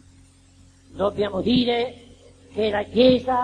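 A man chants through loudspeakers in a large echoing hall.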